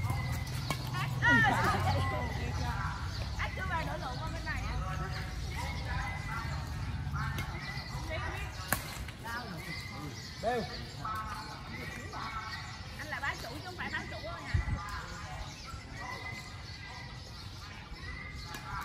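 A badminton racket hits a shuttlecock outdoors.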